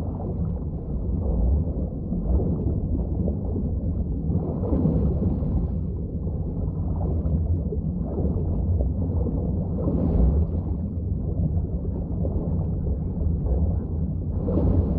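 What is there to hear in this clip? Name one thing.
Wind rushes past steadily in a deep roar.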